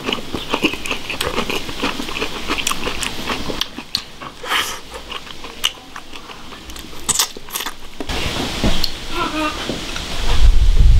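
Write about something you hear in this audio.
A man chews food noisily, close by.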